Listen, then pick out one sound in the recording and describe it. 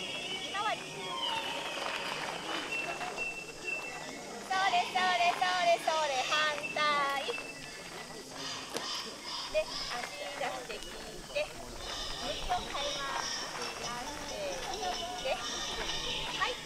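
Feet shuffle on gravel as people dance.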